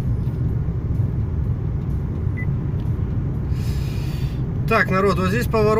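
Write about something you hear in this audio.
A car's engine and tyres rumble steadily on the road, heard from inside the car.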